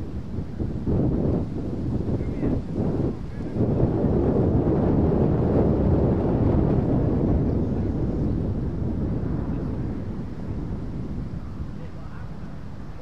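Wind gusts loudly across an open field.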